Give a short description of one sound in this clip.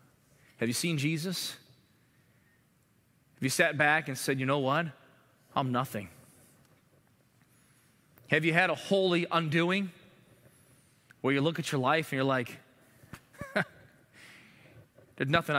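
A man speaks with emphasis through a microphone, pausing between phrases.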